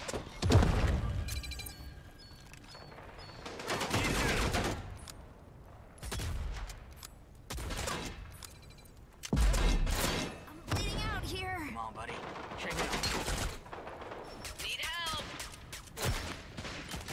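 Rifle shots crack out in a video game.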